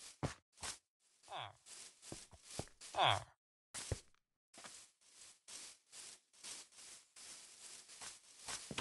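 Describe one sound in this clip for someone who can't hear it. Footsteps crunch on grass and dirt.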